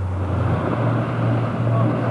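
Small waves wash onto a sandy shore.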